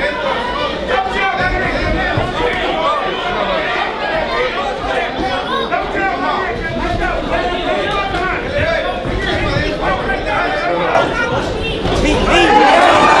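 A crowd of spectators talks and shouts throughout in an echoing hall.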